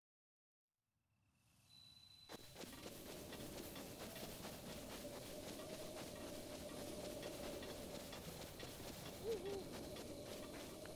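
Wind blows steadily across an open field.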